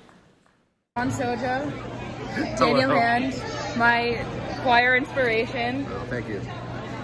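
A young woman talks cheerfully close by.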